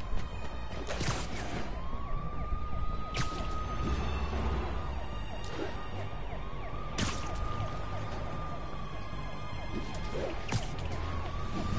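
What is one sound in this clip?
Sharp zips of web shooting snap out repeatedly.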